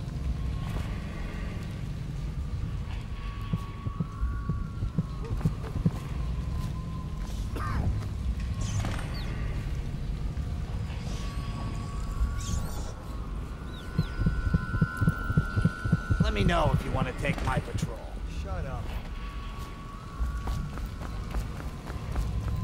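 Footsteps thud softly on stone as someone walks.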